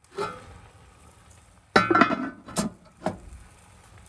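A heavy metal lid clanks onto a pot.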